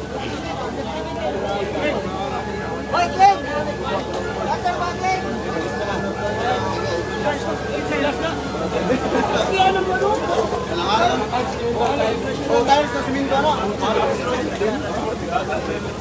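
Water hisses from a fire hose onto a burning van.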